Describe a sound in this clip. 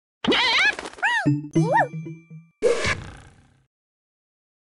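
Cheerful game sound effects chime and swoop as a level is completed.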